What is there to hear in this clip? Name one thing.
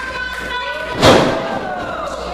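A wrestler slams down onto the ring mat with a loud thud.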